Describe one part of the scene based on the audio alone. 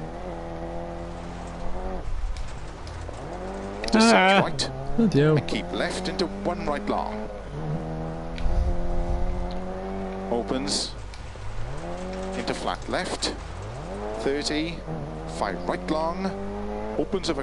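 A car engine revs and whines steadily, rising and falling with gear changes.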